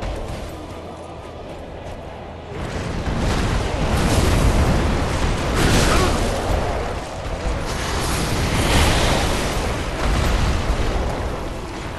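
A huge beast roars loudly.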